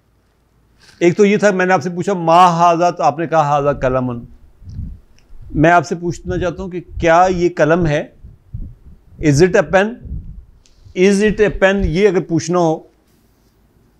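An elderly man speaks calmly and clearly into a close microphone, explaining.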